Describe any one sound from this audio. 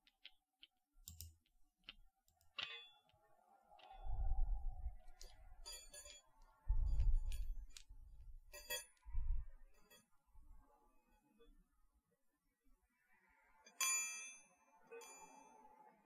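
Small metal balls clink and chime with a ringing tone.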